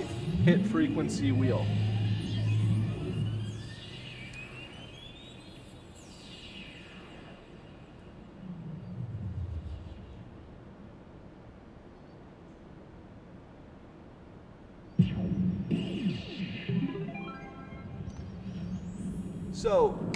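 A slot machine plays electronic tones and chimes.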